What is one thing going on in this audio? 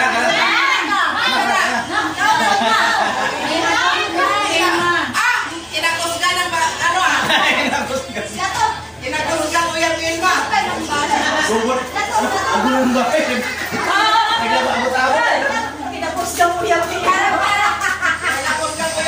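A group of men and women chat and laugh together nearby.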